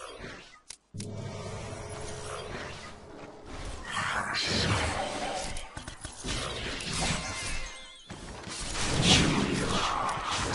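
Magic spells blast and crackle in a busy fight.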